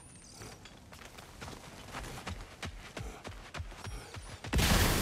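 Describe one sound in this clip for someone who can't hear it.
Heavy footsteps crunch quickly over dirt and gravel.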